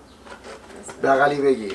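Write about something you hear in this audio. A man speaks warmly close by.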